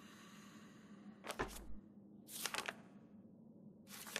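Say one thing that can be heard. A book's page rustles as it turns.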